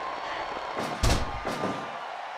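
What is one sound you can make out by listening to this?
A body thuds heavily onto a mat.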